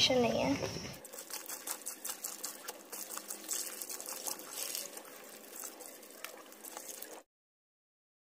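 Water runs from a tap.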